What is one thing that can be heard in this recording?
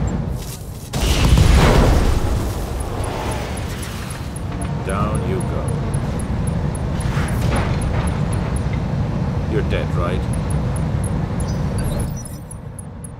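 Heavy explosions boom and rumble.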